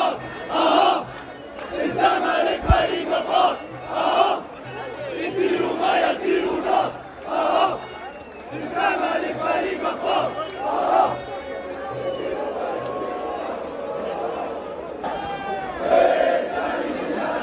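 A large crowd of men chants and cheers loudly.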